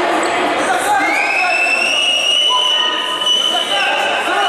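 A referee blows a long whistle blast.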